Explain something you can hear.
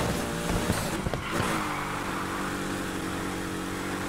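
Tyres screech as a car drifts through a bend.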